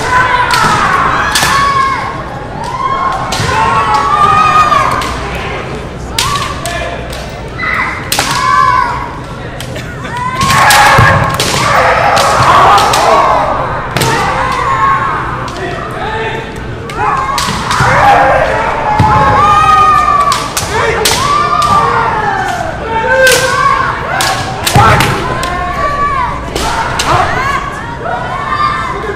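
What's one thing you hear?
Fighters shout loud, drawn-out cries in an echoing hall.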